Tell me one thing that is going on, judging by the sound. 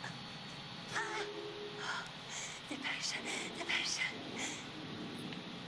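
A young woman whispers urgently, close by.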